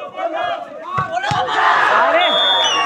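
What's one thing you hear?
A volleyball thumps as a player hits it.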